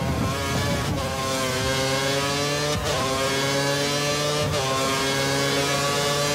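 A racing car engine screams at high revs, rising in pitch and dropping briefly at each gear change.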